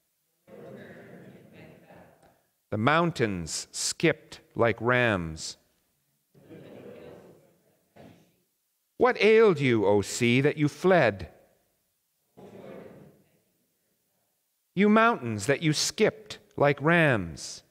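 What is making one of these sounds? An elderly man speaks slowly in a measured voice, with pauses between phrases.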